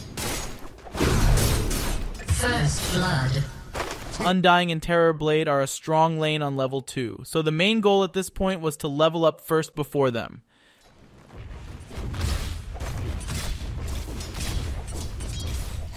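Weapons clash and spells burst in a fight.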